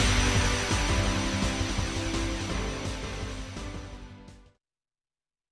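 A shimmering magical burst rings out and slowly fades.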